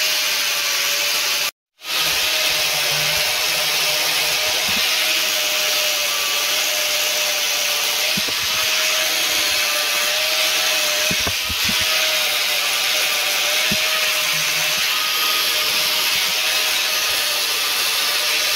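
An angle grinder whines loudly and steadily.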